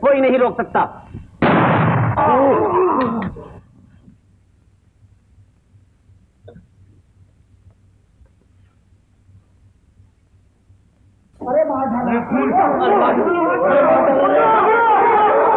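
A crowd of men shout and clamour excitedly nearby.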